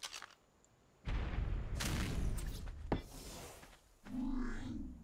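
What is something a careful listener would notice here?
Quick footsteps crunch on sand.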